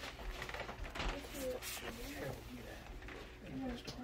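A book slides off a shelf with a soft rustle.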